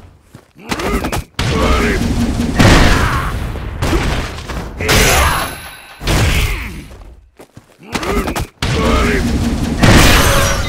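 Heavy blows and body slams thud and crash in quick bursts.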